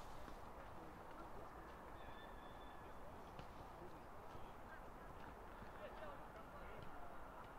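Distant players shout across an open field outdoors.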